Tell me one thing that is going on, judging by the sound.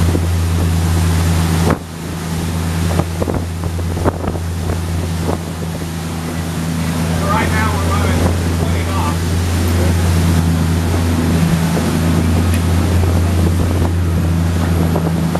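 The inboard diesel engines of a sport-fishing boat drone underway at speed.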